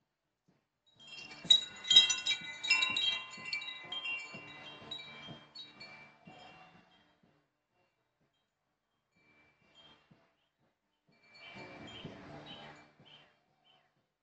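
A bird calls repeatedly nearby.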